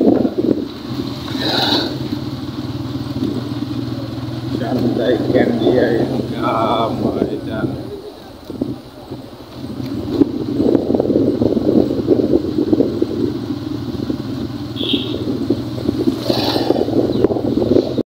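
A vehicle engine hums while riding along a road.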